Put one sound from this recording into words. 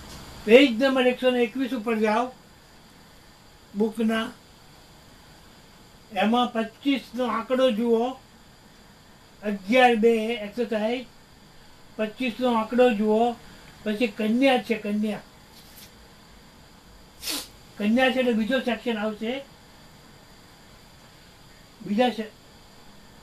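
A woman speaks calmly nearby, in short bursts with pauses.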